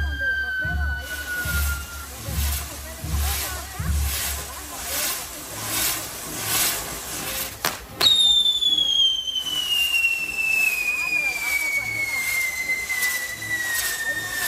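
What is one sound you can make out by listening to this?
A spinning firework wheel hisses and roars in rhythmic pulses.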